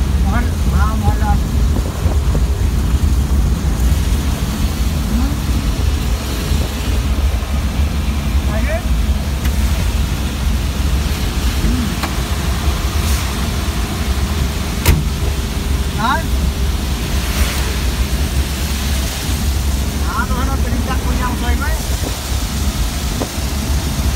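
Rain patters on the windshield.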